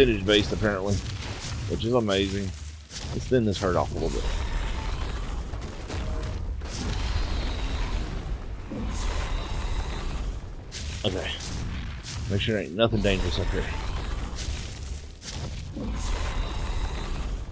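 Large wings beat with a steady low rumble.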